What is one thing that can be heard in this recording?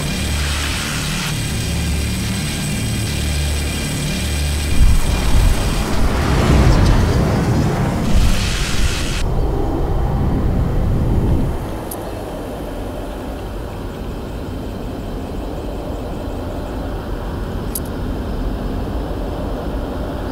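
A spaceship engine rumbles deeply, swelling louder and then dropping to a softer hum.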